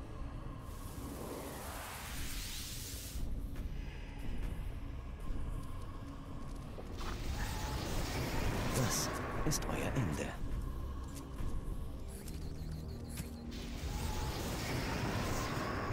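Magic spells whoosh and burst.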